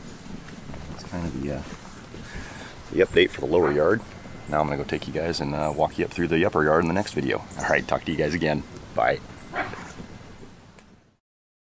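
A man talks with animation close to the microphone, outdoors.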